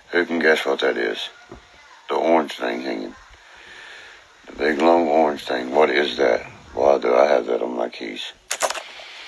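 A man talks casually and close by.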